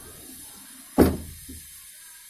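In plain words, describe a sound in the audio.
A wooden sliding door thuds against its stop.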